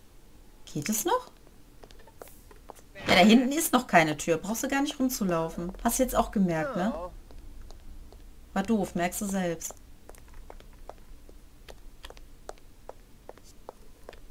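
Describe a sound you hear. Footsteps tap softly on pavement.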